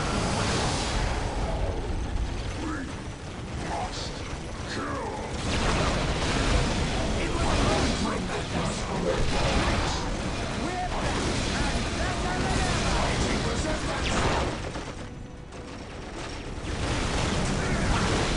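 Guns fire in rapid bursts during a battle.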